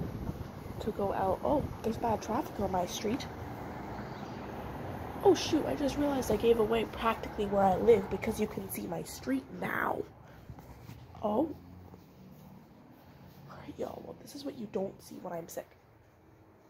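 A young girl talks with animation close to a phone microphone.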